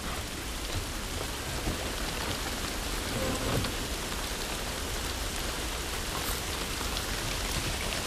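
Footsteps crunch over debris.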